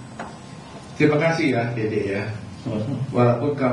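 A man speaks animatedly into a microphone.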